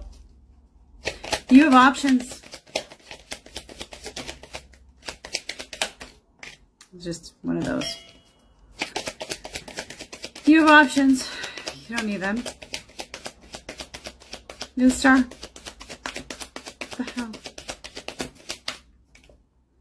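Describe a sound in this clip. Cards riffle and shuffle in a woman's hands.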